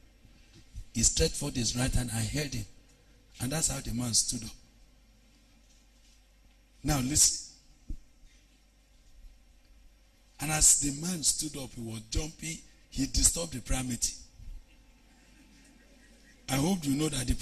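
A man speaks animatedly into a microphone in bursts, with long pauses.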